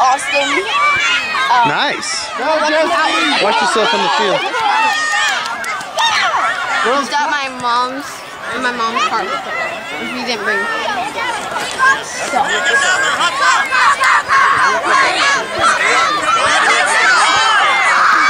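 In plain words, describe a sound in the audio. A crowd of children and adults shout and cheer outdoors.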